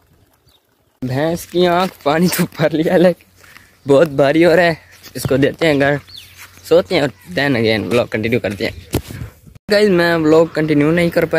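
A young man talks animatedly, close up.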